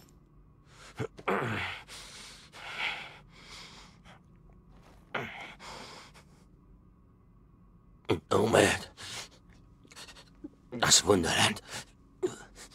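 A man speaks hoarsely and with strain, in short phrases.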